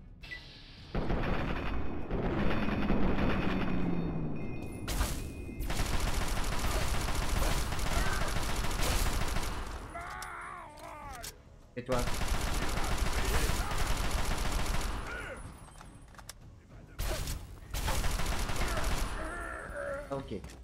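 Automatic gunfire rattles in long rapid bursts.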